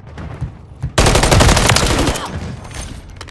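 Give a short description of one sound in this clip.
Rapid gunfire rattles in a fast burst.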